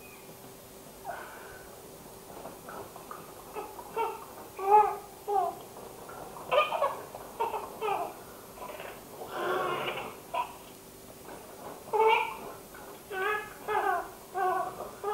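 A baby laughs and squeals close by.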